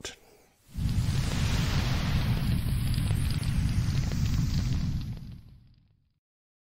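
A fiery blast roars and rumbles, then fades away.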